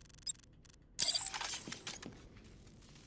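An electric charge fires with a sharp crackling buzz.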